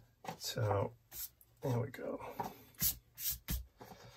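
A hand brushes across a paper page.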